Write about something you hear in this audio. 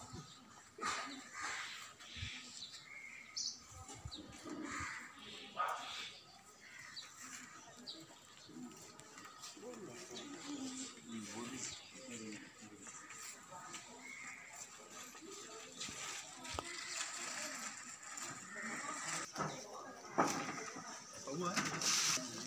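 Men and women talk nearby outdoors.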